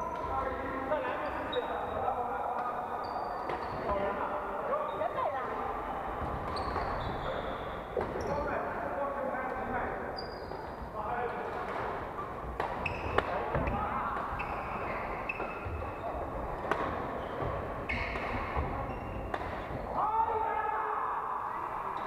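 Rackets smack shuttlecocks with sharp pops in a large echoing hall.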